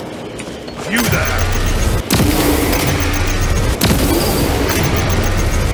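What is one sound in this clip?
A large explosion booms and crackles with electric sparks.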